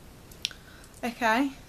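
A young woman speaks briefly close to a microphone.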